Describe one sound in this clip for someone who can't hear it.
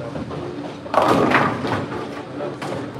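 Bowling pins crash and scatter.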